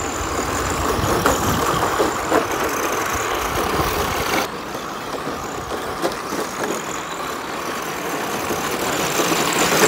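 Tyres of model cars skid and crunch on dirt.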